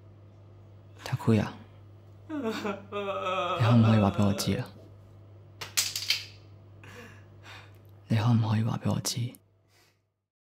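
A young man cries out and sobs loudly in an echoing room.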